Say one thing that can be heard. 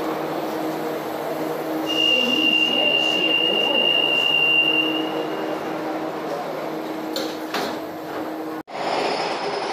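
A subway train hums steadily while riding.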